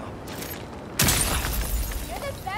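Crinkly foil rustles as it is pushed aside.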